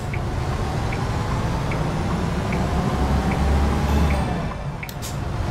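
A turn signal ticks steadily.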